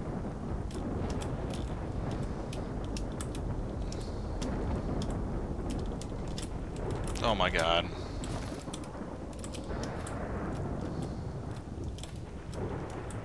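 Footsteps clank on ladder rungs in an even rhythm.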